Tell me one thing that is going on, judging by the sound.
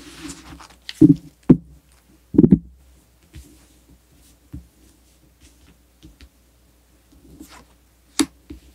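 Cards are laid down with soft taps on a table.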